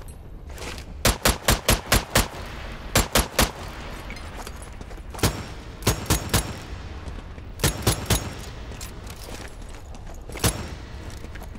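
A gun fires several shots that echo in a stone hall.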